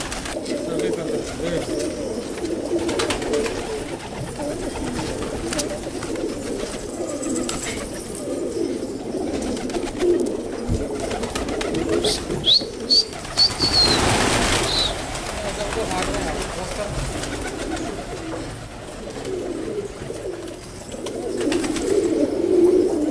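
Pigeons coo softly and steadily.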